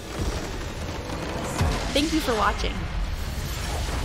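A huge structure explodes with a deep boom.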